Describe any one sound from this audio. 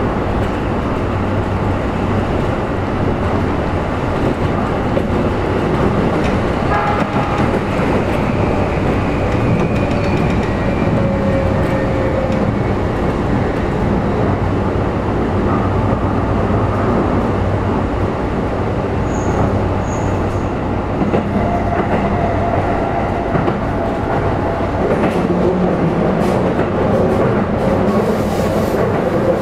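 A train's electric motor whines, its pitch slowly shifting.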